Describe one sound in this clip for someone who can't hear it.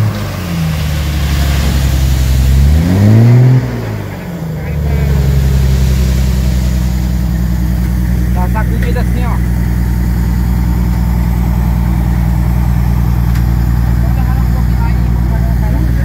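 Sand pours and slides out of a dump truck's tipped bed.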